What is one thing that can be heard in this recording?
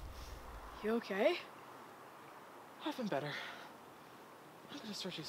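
A teenage boy speaks nervously outdoors.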